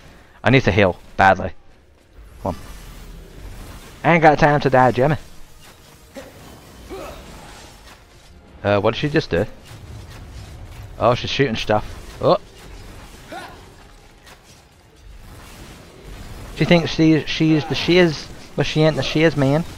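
Swords clash and slash in quick strikes.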